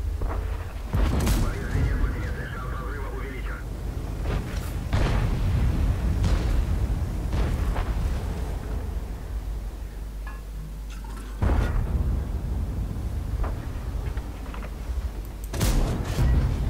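Tank guns fire with loud booming blasts.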